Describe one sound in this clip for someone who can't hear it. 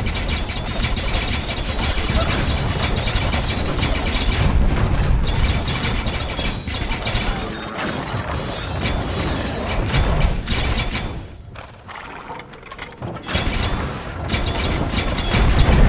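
Soldiers clash with clanging weapons.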